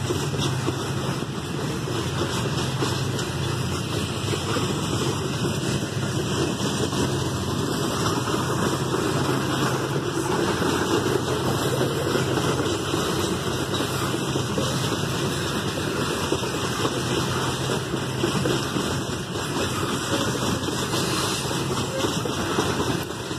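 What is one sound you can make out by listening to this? A freight train rumbles past with wagons clattering on the rails.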